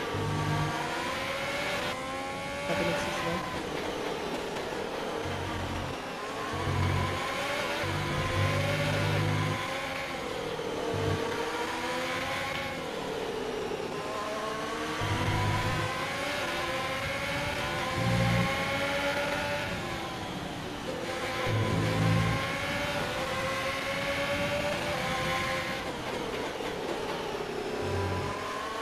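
A racing car engine screams, rising and falling in pitch through the gears.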